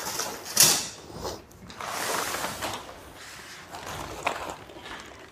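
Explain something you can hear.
Plastic sheeting rustles and crinkles as it is handled.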